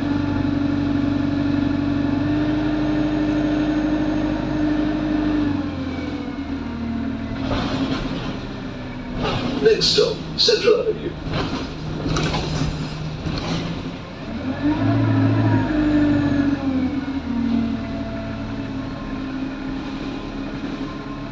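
A bus rattles and clatters as it drives.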